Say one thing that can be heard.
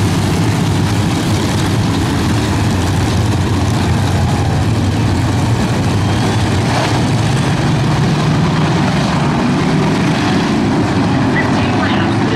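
Many race car engines roar loudly and steadily close by.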